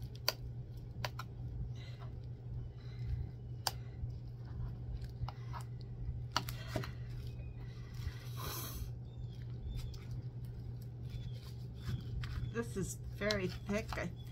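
A metal spoon scrapes and clinks inside a tin can.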